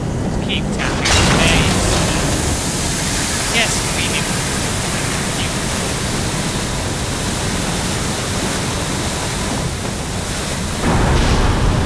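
Steam hisses loudly from a vent.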